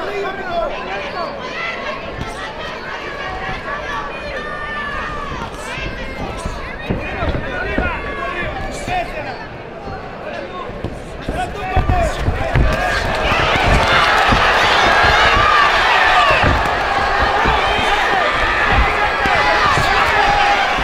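Boxing gloves thud as punches land.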